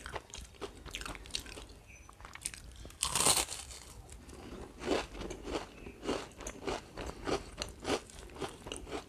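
Fingers squish and mix soft food on a leaf.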